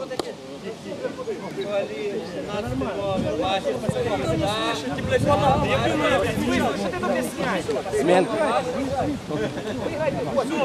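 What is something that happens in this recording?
Several men shout and call out to one another outdoors.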